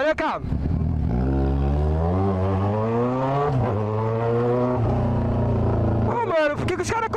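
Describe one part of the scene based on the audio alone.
A motorcycle engine revs up loudly, rising in pitch between gear shifts.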